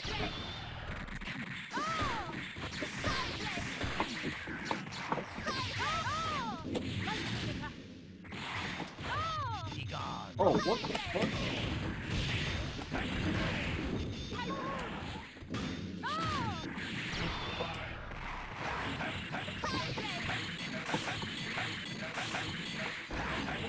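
Two men talk with animation close to a microphone.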